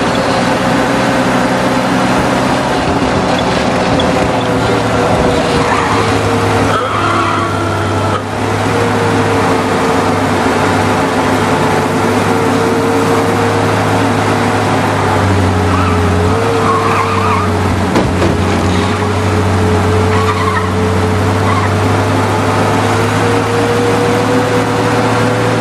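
Tyres roll on a paved street.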